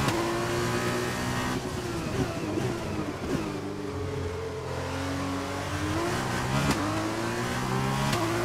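A racing car engine roars, its pitch dropping as it brakes and rising again as it speeds up.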